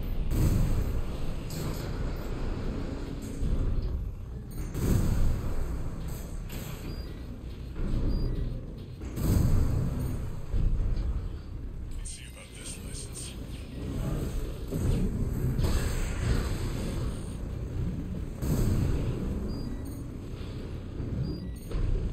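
Heavy gunfire and explosions boom repeatedly.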